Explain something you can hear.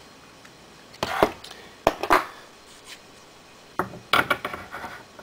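A metal part clicks and scrapes as it is screwed into a press.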